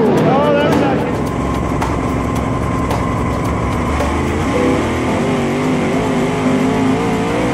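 A race car engine rumbles and idles up close.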